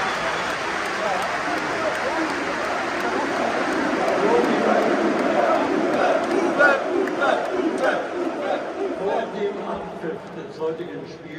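A stadium crowd sings together loudly.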